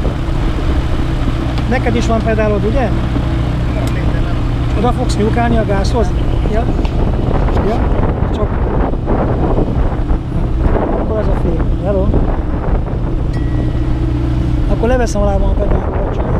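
An aircraft engine hums steadily at idle.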